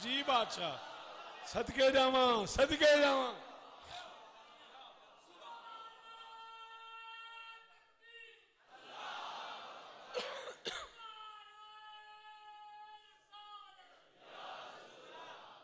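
A man sings a mournful chant loudly through a loudspeaker, with long held notes.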